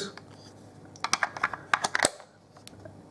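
Plastic casing clicks and knocks as it is handled.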